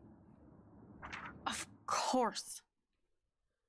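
A woman speaks curtly, close by.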